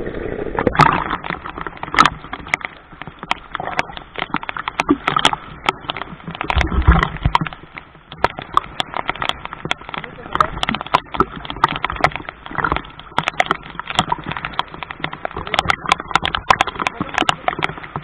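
Water splashes and sloshes as a man wades through the sea.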